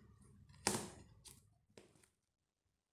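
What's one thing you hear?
Plastic wrap crinkles briefly.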